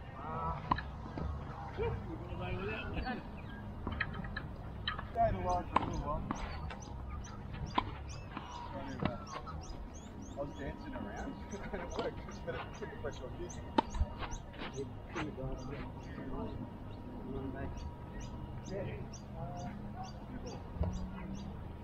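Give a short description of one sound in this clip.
Tennis balls pop off rackets in a rally outdoors.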